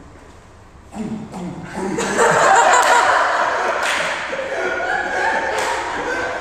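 A young man laughs and shouts nearby in an echoing room.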